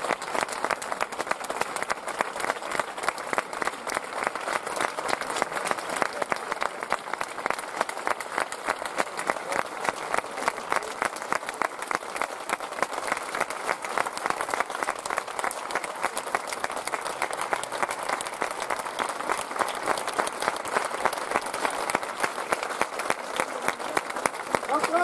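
An audience claps loudly and steadily in an echoing hall.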